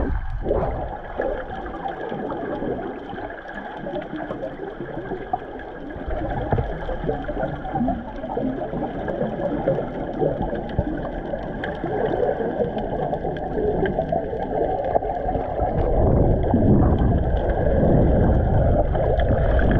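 Water rushes and bubbles in a muffled, underwater roar.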